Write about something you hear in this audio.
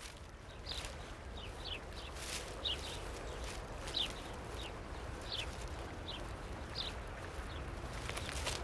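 A bird of prey gives repeated short, high, falling chirps.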